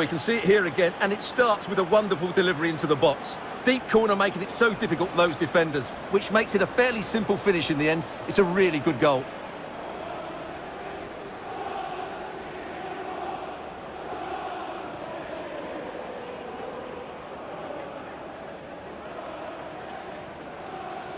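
A large crowd cheers and chants in a stadium.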